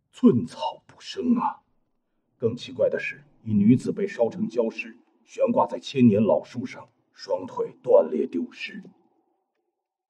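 An elderly man speaks gravely and slowly.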